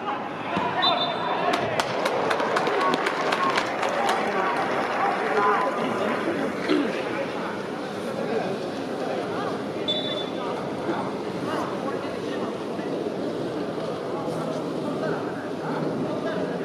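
Young men talk and call out to each other.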